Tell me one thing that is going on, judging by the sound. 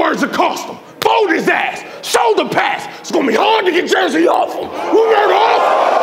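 A young man raps loudly and with energy into a microphone.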